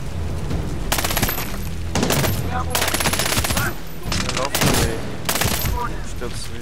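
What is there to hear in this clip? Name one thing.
Automatic rifle fire bursts in rapid volleys.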